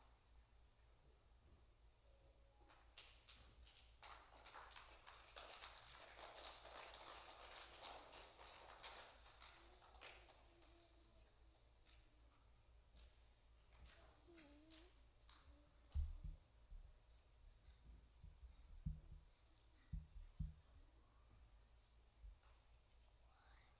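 A young girl speaks slowly into a microphone.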